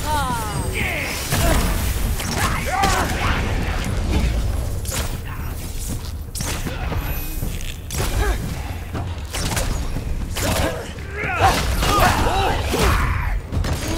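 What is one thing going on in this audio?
A magical blast bursts with a sharp crackle.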